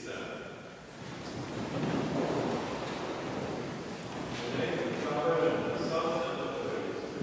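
A crowd of people murmur and talk quietly as they stand.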